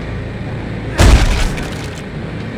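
A heavy boot stomps down with a loud, crunching thud.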